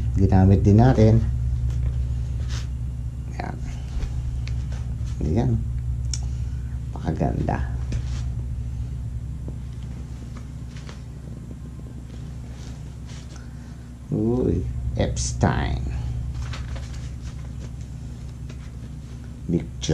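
Pages of a magazine rustle as they turn.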